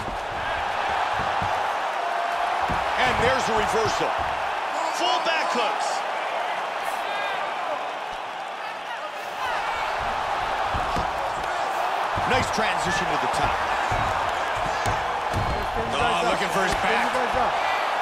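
A crowd murmurs and cheers steadily in a large arena.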